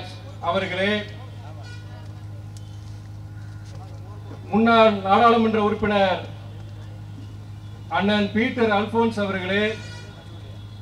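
A man speaks slowly and forcefully through a microphone and loudspeakers, with long pauses.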